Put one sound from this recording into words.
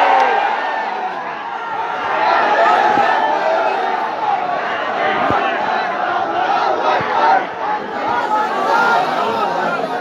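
A large crowd of men chants loudly in unison.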